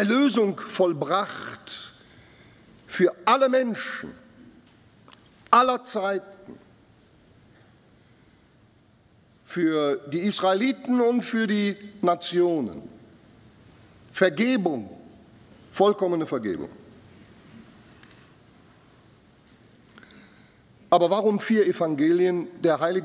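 An older man speaks with animation into a microphone, with pauses.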